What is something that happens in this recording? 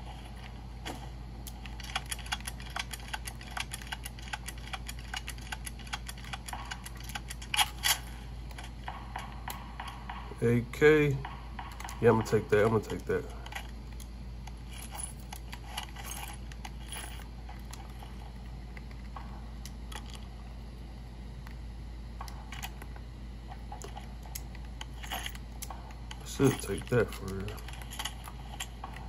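Thumbsticks and buttons on a handheld game controller click softly.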